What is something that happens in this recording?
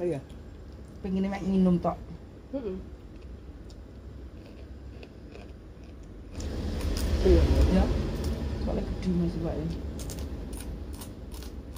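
A man chews food with his mouth full.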